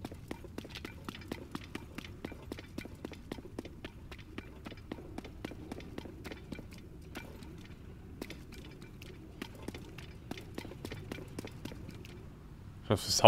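Footsteps crunch quickly over stony ground.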